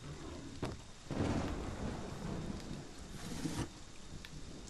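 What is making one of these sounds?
Drawers rattle and bump as someone rummages through them.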